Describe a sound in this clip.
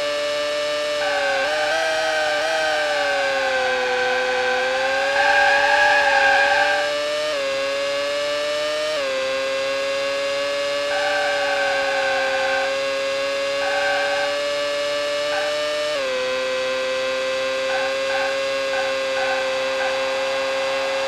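Racing car tyres screech while cornering.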